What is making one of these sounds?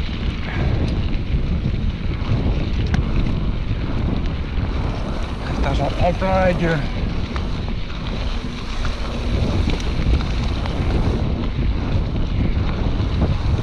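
Wind buffets the microphone with a low roar.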